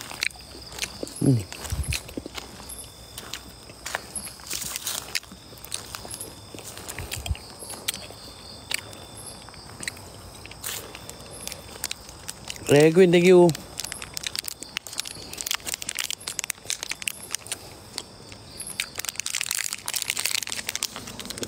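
Footsteps crunch on dry leaves and dirt.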